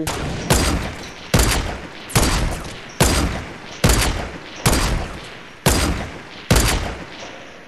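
A rifle fires a series of sharp, echoing shots.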